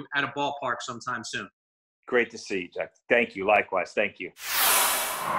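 A middle-aged man talks with animation over an online call.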